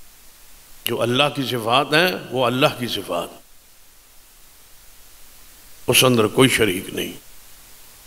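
An elderly man speaks emphatically into a microphone, heard through a loudspeaker.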